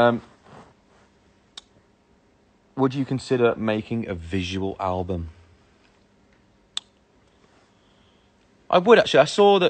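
A young man speaks calmly and close to a phone's microphone.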